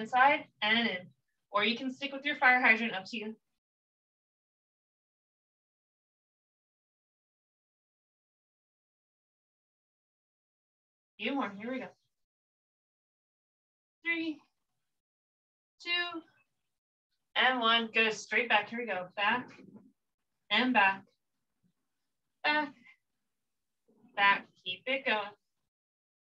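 A woman speaks calmly, giving instructions in short phrases.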